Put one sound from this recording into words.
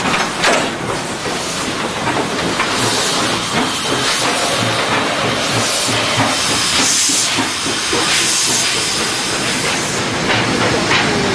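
A steam locomotive chuffs loudly as it pulls away.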